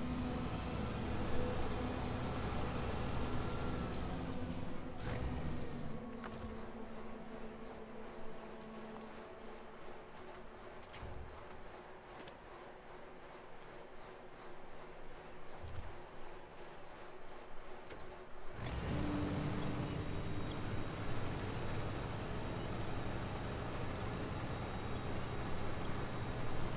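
A heavy vehicle engine rumbles and strains.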